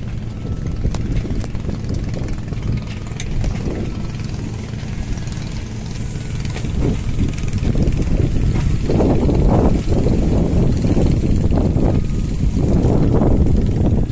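Strong wind gusts and rumbles outdoors.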